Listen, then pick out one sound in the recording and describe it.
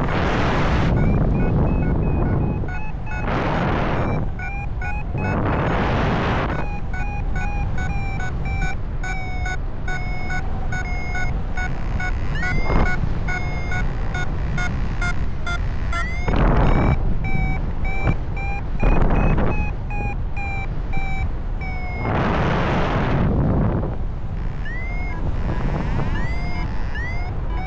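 A flight instrument beeps in quick, pitched pulses.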